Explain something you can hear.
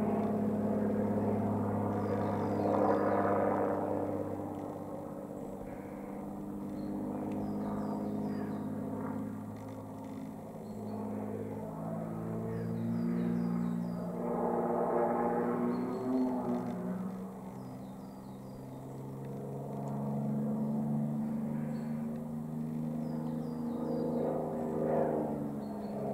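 A propeller plane's engine drones overhead, rising and falling in pitch as it rolls and loops.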